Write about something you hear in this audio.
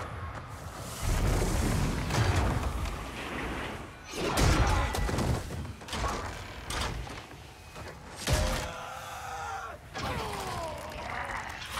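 Heavy wooden poles clash and thud in a fight.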